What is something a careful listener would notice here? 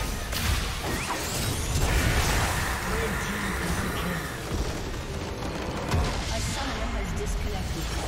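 Magic blasts crackle and whoosh in a fast video game battle.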